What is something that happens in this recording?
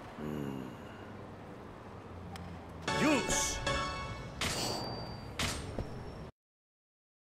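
Game jingles and menu chimes play.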